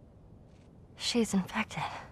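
A young girl speaks softly and nervously.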